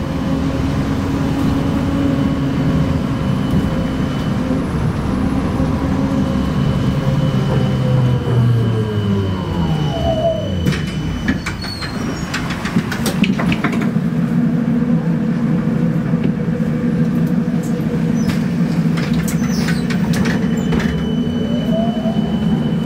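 A vehicle engine hums steadily from inside, its pitch dropping as it slows and rising again as it speeds up.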